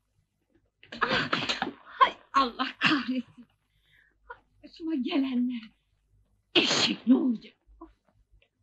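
A young woman grunts and gasps with effort.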